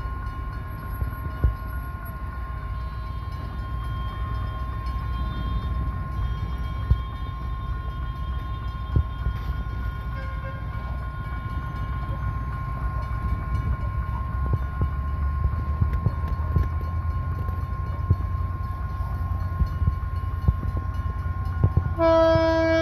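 A railway crossing alarm rings steadily.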